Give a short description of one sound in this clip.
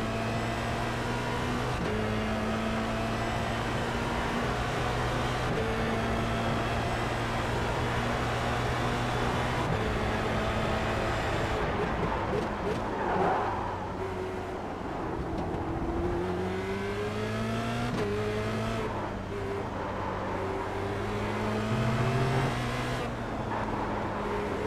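A racing car engine whines at high revs, rising through the gears and dropping on downshifts.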